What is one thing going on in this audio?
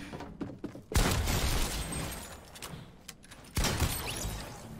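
A video game shotgun fires with sharp blasts.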